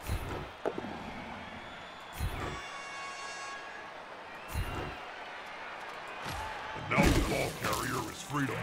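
Heavy thuds and crunches ring out as armoured players collide.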